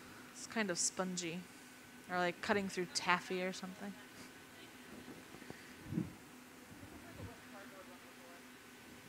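A furnace burner roars steadily.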